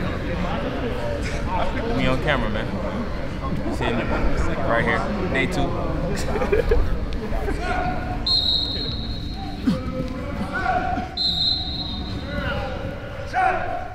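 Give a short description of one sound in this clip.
Sneakers squeak on artificial turf in a large echoing hall.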